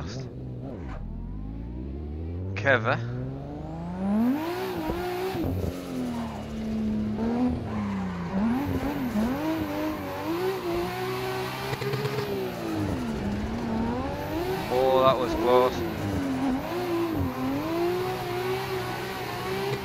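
A racing car engine revs up and down hard.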